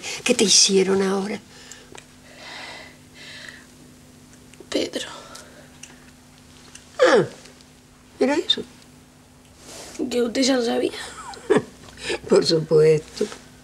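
An elderly woman speaks with emotion close by.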